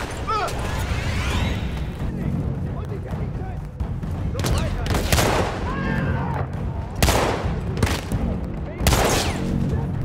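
A revolver fires several loud shots.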